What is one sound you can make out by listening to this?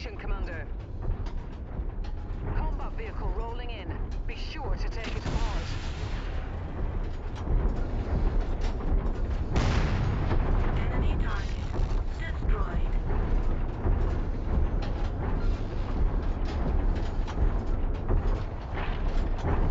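A heavy walking machine rumbles and thuds steadily.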